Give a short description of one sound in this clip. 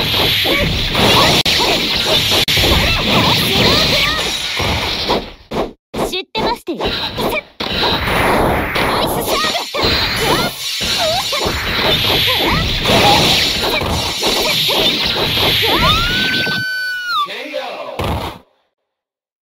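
Sword slashes and magic blasts clash rapidly in a game fight.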